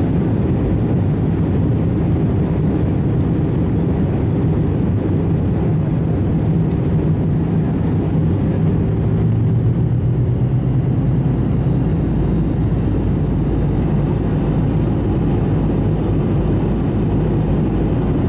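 Jet engines roar steadily with a deep, constant rumble.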